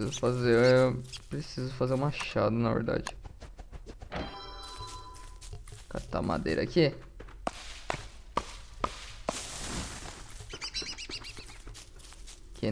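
Light footsteps patter on dry ground.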